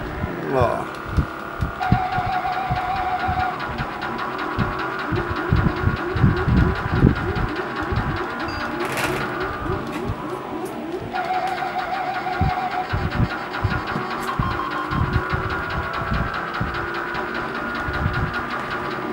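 Electronic game music plays with a thumping beat.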